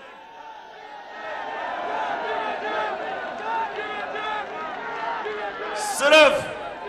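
A large crowd chants and cheers outdoors.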